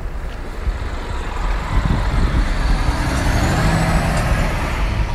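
A bus drives past close by.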